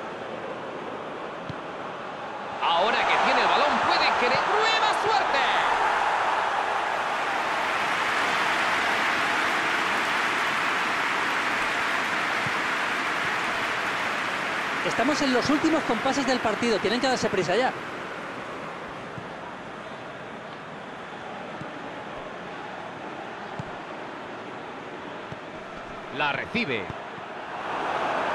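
A large crowd cheers and roars steadily, swelling loudly for a while before settling down.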